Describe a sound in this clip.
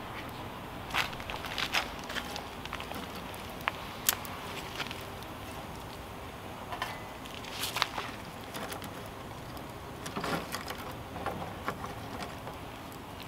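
Dry twigs clatter as they are fed into a fire.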